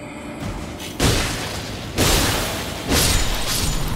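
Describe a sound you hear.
Loud bursts of magic blast in a rocky cave.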